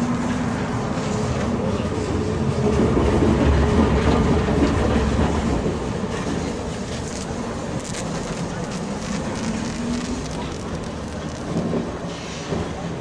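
A tram's electric motor hums and whines as the tram pulls away.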